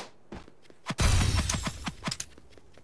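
A magical blast whooshes and booms.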